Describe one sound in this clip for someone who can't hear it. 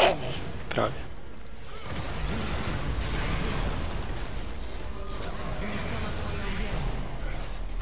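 Video game spell effects whoosh and crackle.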